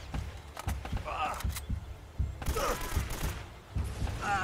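A rifle fires rapid shots in bursts.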